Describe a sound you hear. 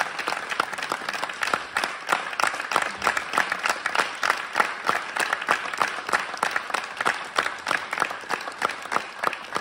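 A woman sings into a microphone.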